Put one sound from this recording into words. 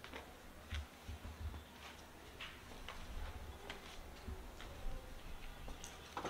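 A man walks with slow footsteps.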